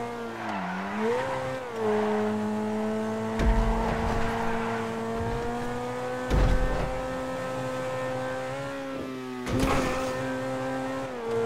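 A sports car engine revs high and roars steadily.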